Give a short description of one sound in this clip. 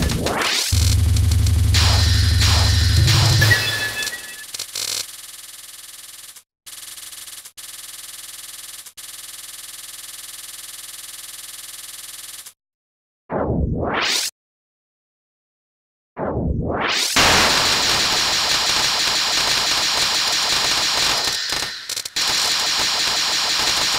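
Upbeat electronic game music plays.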